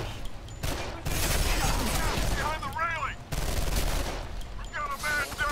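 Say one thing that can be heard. Two pistols fire rapid shots.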